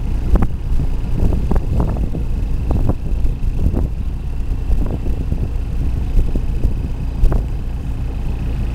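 A fishing boat's inboard diesel engine rumbles low while under way.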